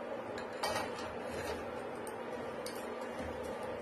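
A spoon scrapes and clicks against a frying pan.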